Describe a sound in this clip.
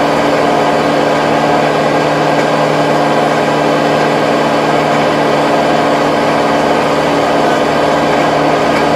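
A tractor engine drones steadily and loudly close by.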